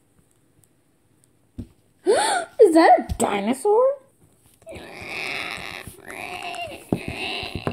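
A hollow plastic toy egg knocks against a hard table.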